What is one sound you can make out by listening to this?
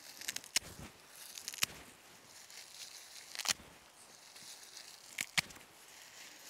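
Grass stems rustle and snap between fingers close by.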